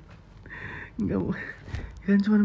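A young man laughs heartily through a phone call.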